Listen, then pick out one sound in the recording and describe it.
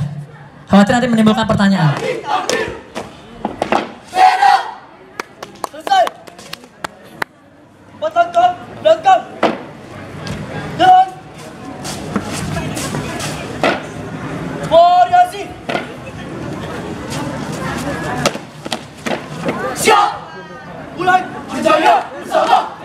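A group of young people shout chants in unison outdoors.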